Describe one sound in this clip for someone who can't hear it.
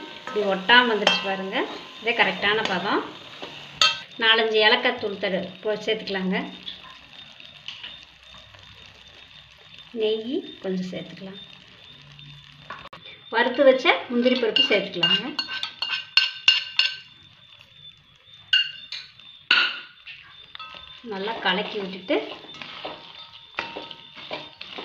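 A metal spatula scrapes and stirs in a metal pan.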